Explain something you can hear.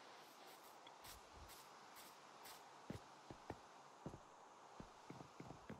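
Footsteps thud softly, one after another.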